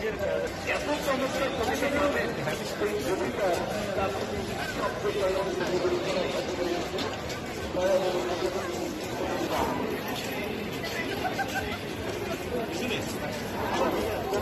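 A crowd of people chatters and murmurs outdoors.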